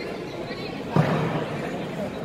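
A body thumps onto a mat.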